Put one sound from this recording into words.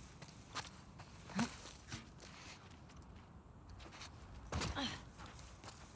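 Leaves rustle as someone pushes through dense ivy.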